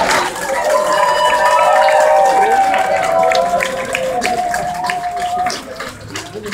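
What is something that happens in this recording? A crowd sings and cheers loudly.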